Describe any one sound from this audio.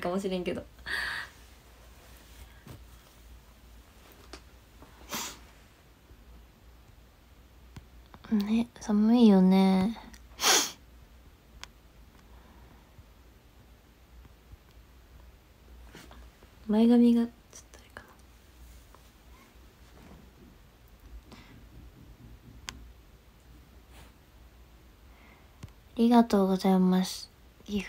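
A young woman speaks softly and playfully, close by.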